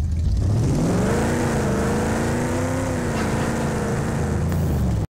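An engine roars steadily as a vehicle drives.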